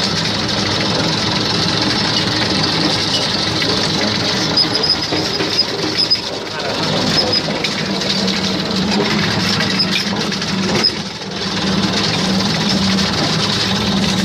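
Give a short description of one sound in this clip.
Tractor tyres crunch over a rough dirt track.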